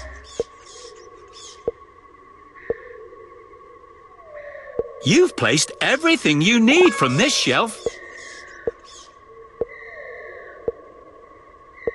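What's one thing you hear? A bright magical chime sparkles.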